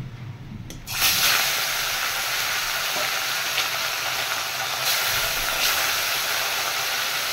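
Oil sizzles and crackles loudly as fish fry in a pan.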